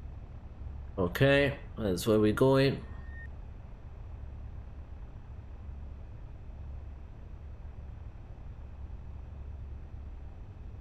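A small propeller plane's engine drones steadily and low.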